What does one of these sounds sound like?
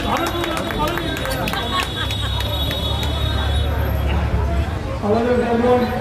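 A man speaks into a microphone over a loudspeaker.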